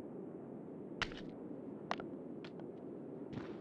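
A hammer clinks and scrapes against rock.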